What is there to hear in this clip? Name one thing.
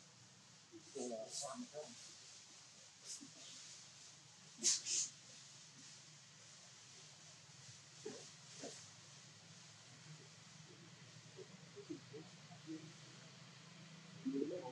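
Monkeys rustle softly as they groom one another.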